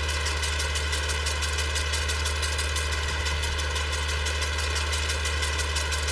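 A mower clatters rapidly as it cuts grass.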